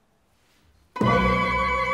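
An orchestra suddenly begins to play loudly.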